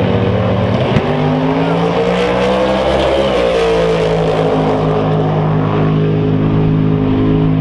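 Race car engines roar and climb in pitch as the cars accelerate away.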